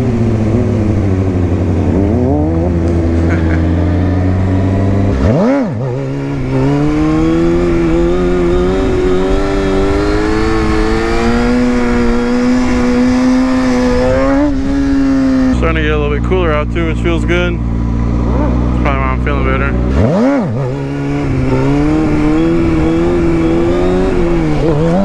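A motorcycle engine revs loudly up and down close by.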